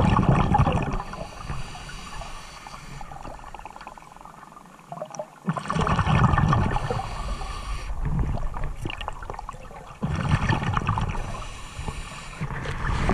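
Water rushes and bubbles underwater, muffled and close.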